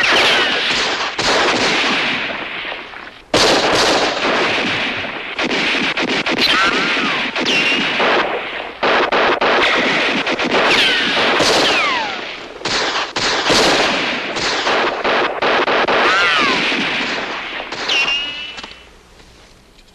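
Bullets whine as they ricochet.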